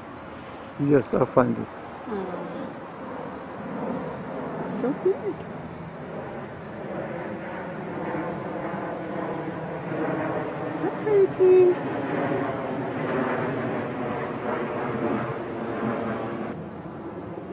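A coyote howls nearby.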